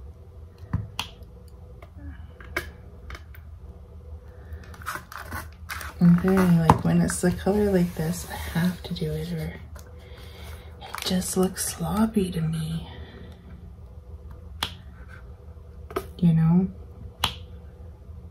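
Small plastic clicks and taps come now and then.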